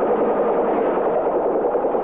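A Huey helicopter's rotor thumps as it turns on the ground.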